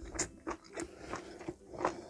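A woman blows on hot food close to a microphone.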